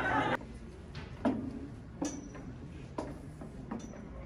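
High heels tap on a hard stage floor.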